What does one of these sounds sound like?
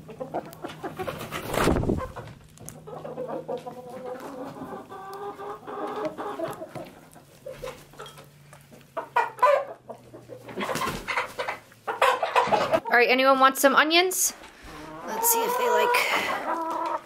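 Hens cluck and murmur close by.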